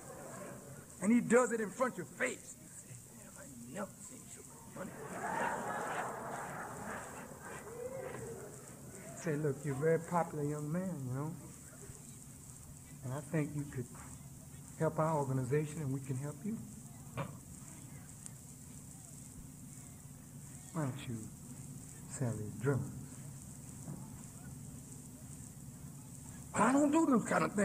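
A man speaks forcefully into a microphone, heard as an old, hissy recording.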